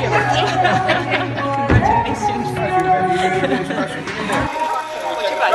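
A woman laughs happily close by.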